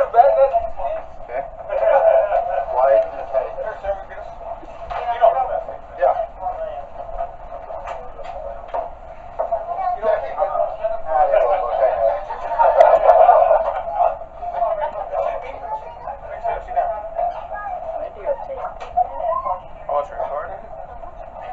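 Several adults talk close by, heard muffled and tinny.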